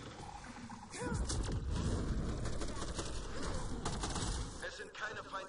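Rapid energy gunfire crackles and buzzes.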